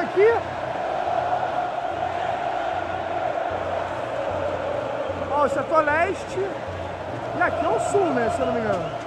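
A huge stadium crowd roars and chants steadily in a vast open space.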